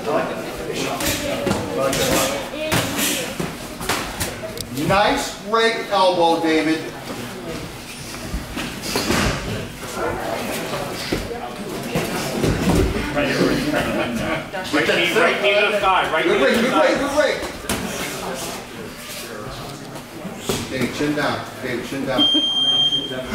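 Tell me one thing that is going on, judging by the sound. Boxing gloves thud against pads and bodies in quick bursts.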